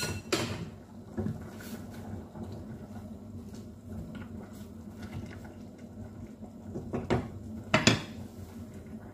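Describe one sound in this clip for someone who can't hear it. A wooden spoon stirs and scrapes inside a metal pot.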